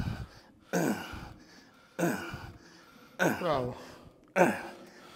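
A man grunts and groans loudly with effort, in short bursts.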